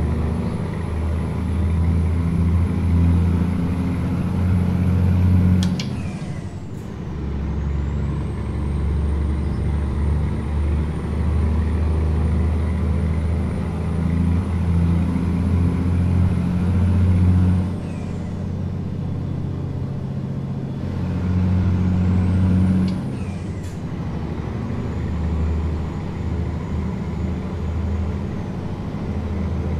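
A heavy truck engine drones steadily, climbing in pitch and dropping back at each gear change.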